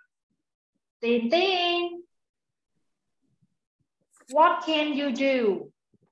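A woman speaks clearly and expressively through an online call.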